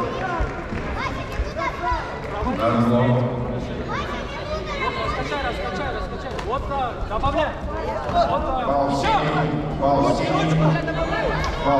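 Many men and women shout and call out across a large echoing hall.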